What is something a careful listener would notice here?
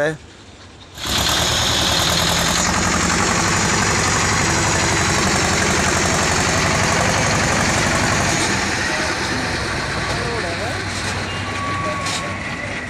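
A tractor engine rumbles loudly nearby.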